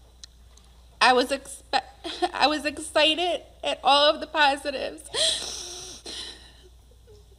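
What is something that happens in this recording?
A young woman speaks with emotion through a microphone.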